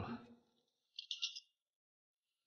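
A telephone handset clicks down onto its cradle.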